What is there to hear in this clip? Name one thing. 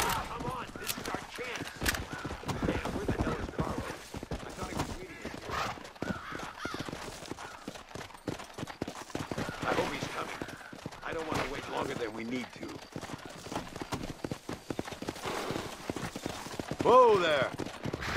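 A horse gallops, hooves thudding on dirt.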